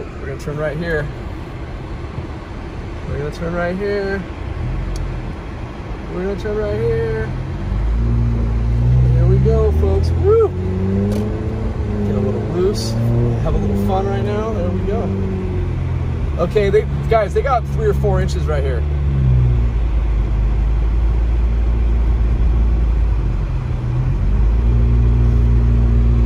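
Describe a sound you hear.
Tyres rumble on a snowy road.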